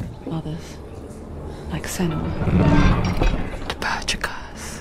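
A heavy wooden gate creaks open.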